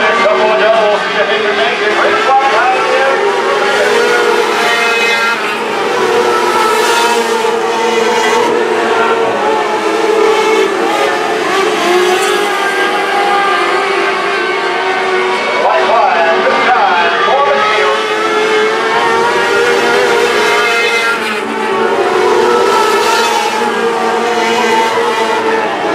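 Race car engines roar loudly as they speed around a dirt track.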